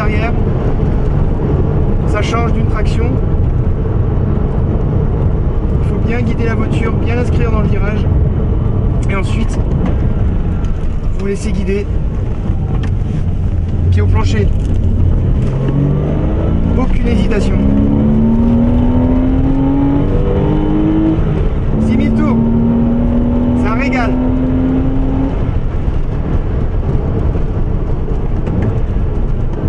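Tyres rumble on the road with wind rushing past.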